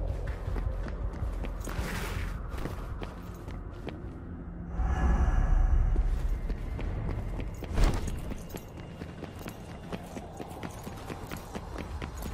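Footsteps run across rough ground.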